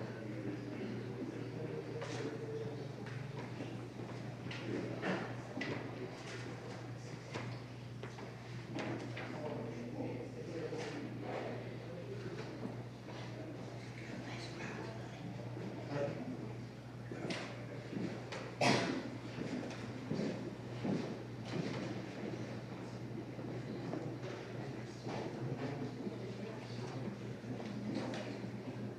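A woman reads out prayers in a steady chanting voice in an echoing room.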